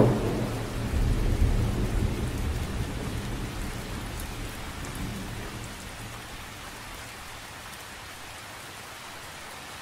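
Rain patters steadily on a lake's surface.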